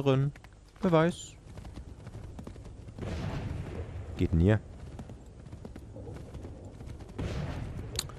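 Horse hooves thud at a gallop on soft ground.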